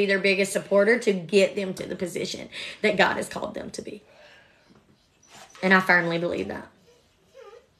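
A young woman talks animatedly and close up.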